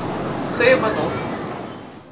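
A teenage boy speaks calmly close by.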